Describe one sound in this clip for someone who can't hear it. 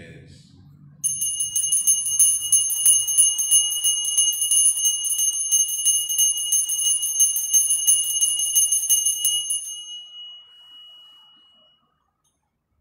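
Small altar bells ring rapidly and steadily, then fade.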